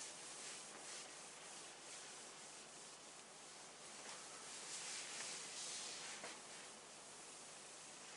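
A cloth wipes across a whiteboard.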